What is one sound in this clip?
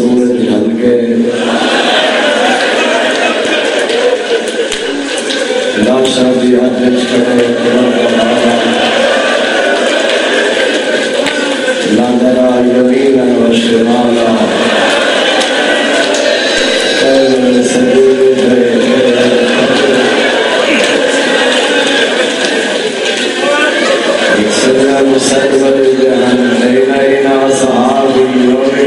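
A man speaks passionately into a microphone, heard through loudspeakers in an echoing space.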